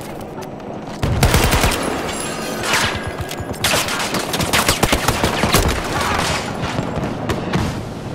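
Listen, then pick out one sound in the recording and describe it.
Gunfire cracks in rapid bursts nearby.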